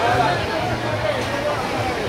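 A crowd of people chatters and calls out on a beach.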